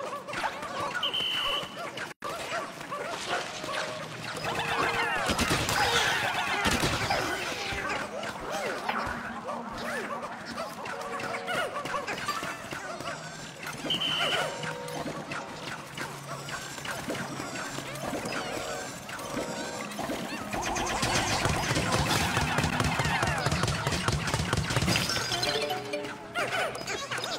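Small creatures squeak and chatter in high little voices.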